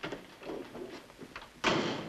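A door handle rattles.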